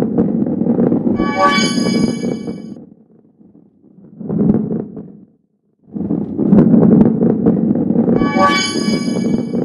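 A heavy ball rolls and rumbles along a wooden track.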